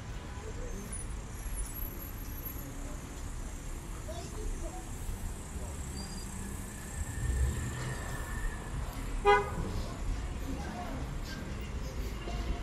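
Traffic hums steadily nearby outdoors.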